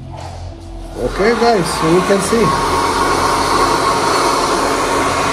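A hair dryer blows with a loud steady whoosh.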